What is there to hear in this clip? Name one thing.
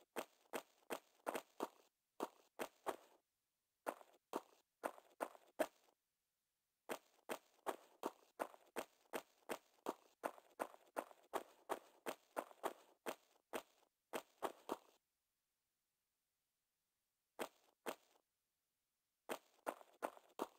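Footsteps thud quickly and evenly on a hard floor in an echoing room.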